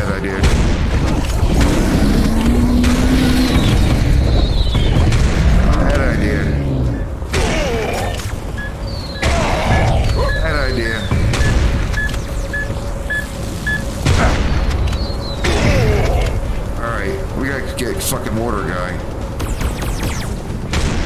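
Shotgun blasts boom one after another.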